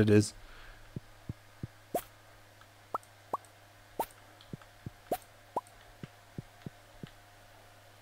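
Short game sound effects pop and click as items are picked up.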